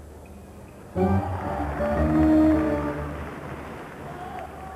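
A crowd of spectators cheers in a large echoing hall.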